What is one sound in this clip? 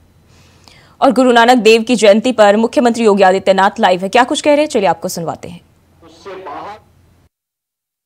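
A young woman reads out the news calmly.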